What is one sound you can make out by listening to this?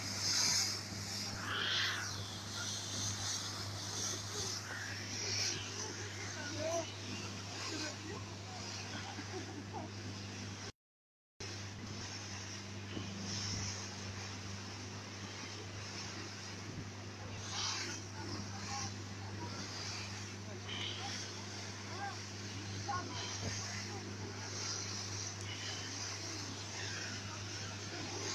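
Water rushes and splashes behind a speeding boat.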